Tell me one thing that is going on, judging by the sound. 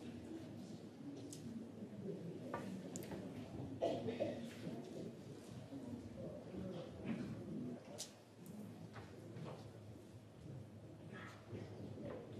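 An audience murmurs softly in a large hall.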